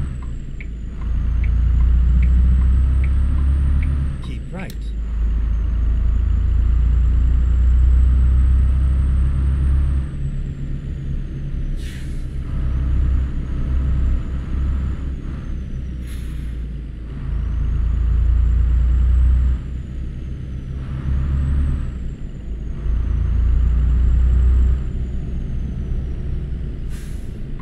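A truck engine rumbles low and steady, swelling and easing as it drives.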